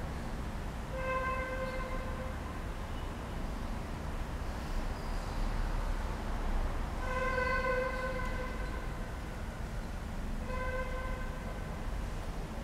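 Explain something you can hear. A man chants slowly in a large echoing hall, heard through a loudspeaker.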